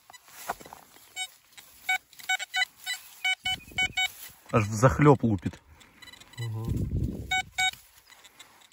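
A metal detector beeps in short bursts over a target.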